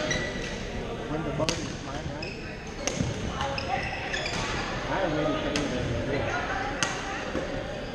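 Shoes squeak on a gym floor.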